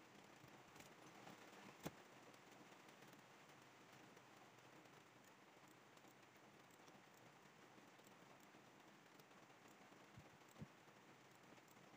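A computer mouse clicks softly now and then.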